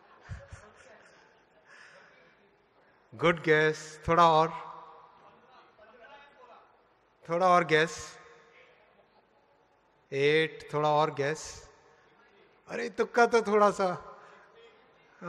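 A middle-aged man speaks loudly and with animation through a microphone in a large echoing hall.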